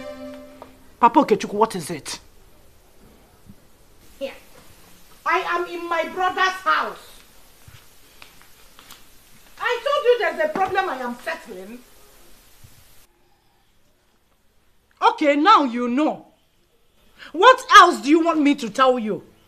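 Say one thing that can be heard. A middle-aged woman talks on a phone with animation.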